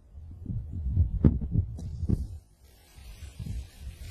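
A golf club strikes sand with a dull thud.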